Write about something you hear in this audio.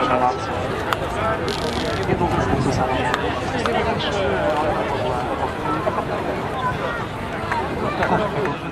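A crowd of people chatters close by outdoors.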